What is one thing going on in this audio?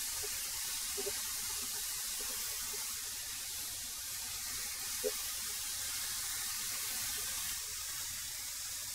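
A thickness planer roars steadily as boards feed through.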